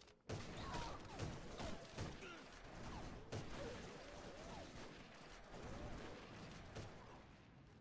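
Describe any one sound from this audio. A sniper rifle fires sharp, booming shots.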